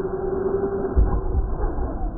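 A toy truck lands with a thud after a jump.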